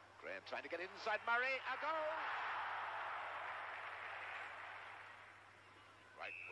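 A large crowd roars and cheers.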